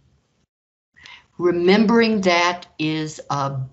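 An elderly woman speaks calmly and clearly into a close microphone.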